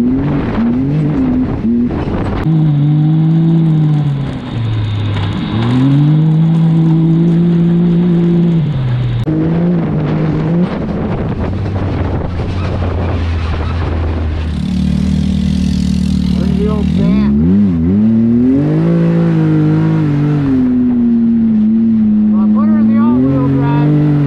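An off-road vehicle's engine roars and revs up and down.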